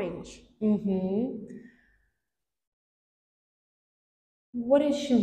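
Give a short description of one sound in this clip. A woman speaks slowly and clearly close by.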